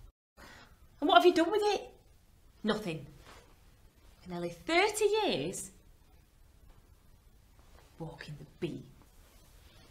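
A young woman speaks and laughs close by.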